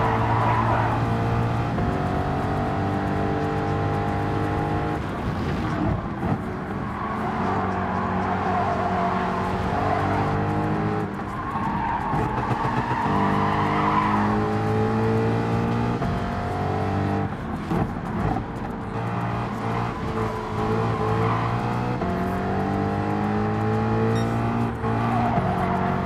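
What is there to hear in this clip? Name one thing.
A racing car engine roars, revving up and down through gear changes.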